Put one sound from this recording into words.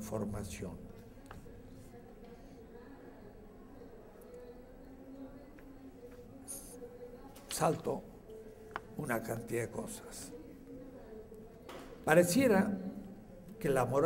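An elderly man speaks calmly and haltingly into a microphone.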